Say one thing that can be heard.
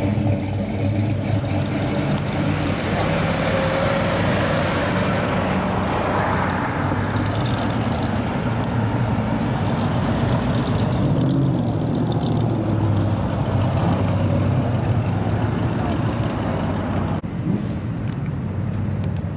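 Old car engines rumble and idle close by.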